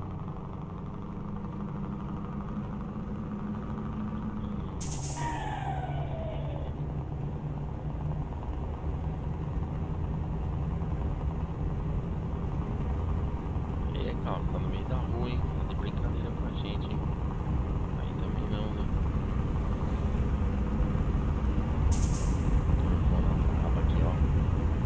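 A truck engine rumbles steadily, shifting pitch as it changes gear.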